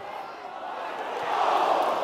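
A ball thumps off a man's head.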